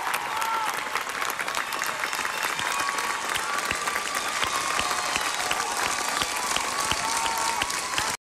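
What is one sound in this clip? A large audience claps and cheers in a big echoing hall.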